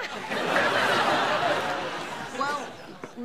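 An older man laughs heartily.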